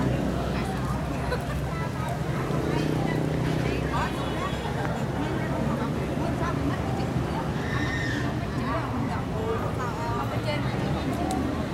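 Young women chatter nearby, outdoors.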